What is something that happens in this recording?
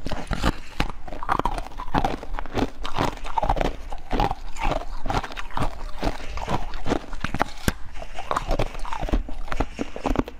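A young woman bites and crunches loudly on a hard brittle treat close to a microphone.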